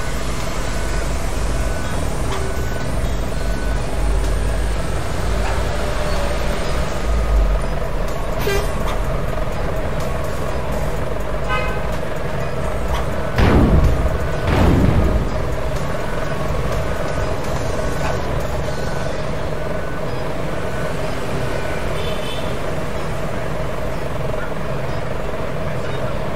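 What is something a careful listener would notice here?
A bus engine hums steadily as the bus moves slowly.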